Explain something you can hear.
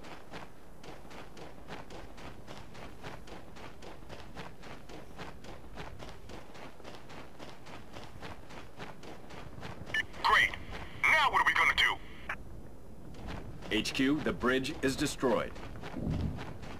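Footsteps crunch quickly over dirt at a running pace.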